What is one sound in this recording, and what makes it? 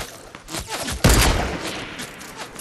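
A rifle fires a single loud, echoing shot.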